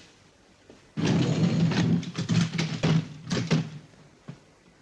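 Clothes rustle as they are pulled from a suitcase.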